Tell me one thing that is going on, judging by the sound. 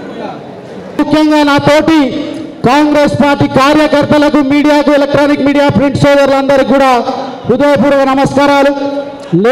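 A man sings loudly through a microphone and loudspeaker.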